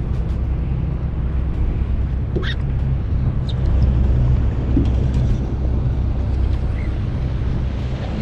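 A fishing reel clicks and whirs as line is pulled out.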